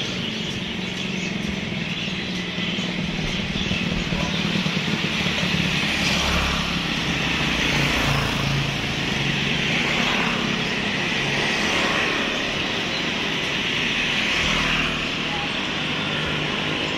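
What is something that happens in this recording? Many caged birds chirp and twitter all around.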